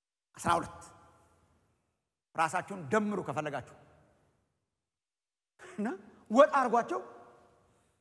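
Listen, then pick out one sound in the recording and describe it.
A man speaks with animation through a microphone in a large room with a slight echo.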